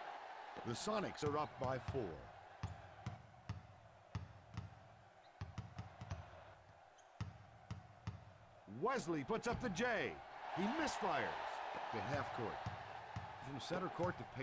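A basketball bounces steadily on a hardwood court.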